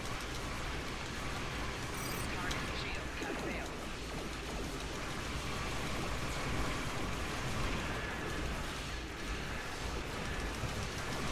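Explosions rumble and crackle.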